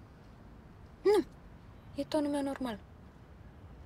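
A woman speaks briefly and quietly, close by.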